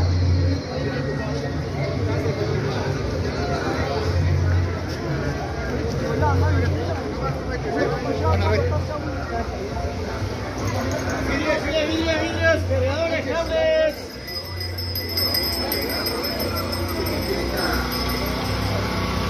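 Footsteps scuff on pavement as people walk.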